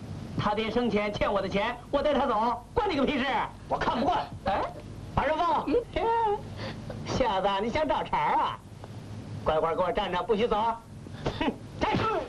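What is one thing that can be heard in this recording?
A man speaks sharply and angrily, close by.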